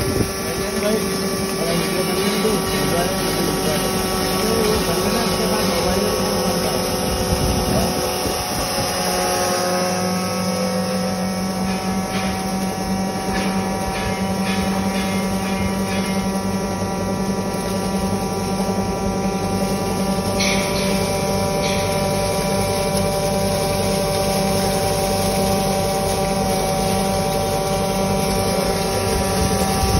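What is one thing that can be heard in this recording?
A grain mill runs with a loud, steady whir and hum.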